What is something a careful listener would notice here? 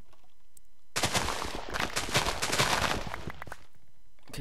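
Crops rustle and crunch as they are cut down in quick succession.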